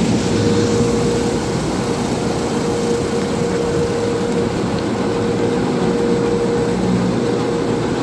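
Water sprays and splashes steadily against a car windshield.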